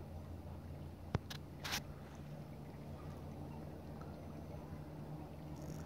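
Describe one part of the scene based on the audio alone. Water laps gently against a kayak's hull.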